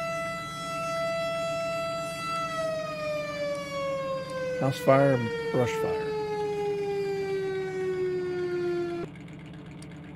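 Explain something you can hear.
A vehicle's engine hums steadily, then slowly drops in pitch.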